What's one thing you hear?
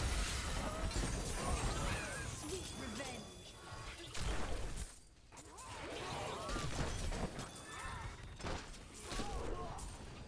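Weapons strike and clash in quick succession.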